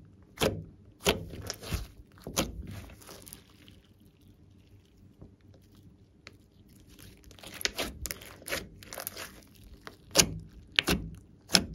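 Sticky slime squishes, pops and crackles as hands knead it.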